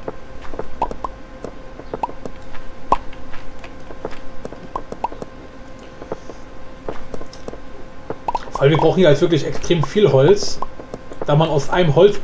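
Wooden blocks are chopped with quick, repeated knocks.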